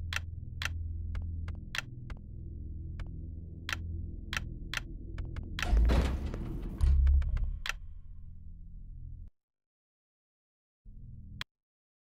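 Short electronic menu clicks sound again and again.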